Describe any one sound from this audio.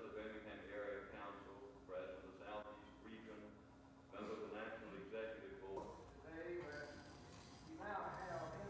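An elderly man speaks slowly in a large echoing hall.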